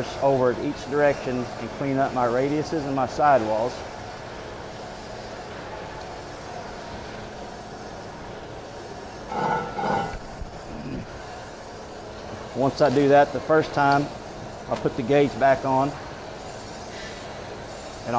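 A grinding machine hums steadily.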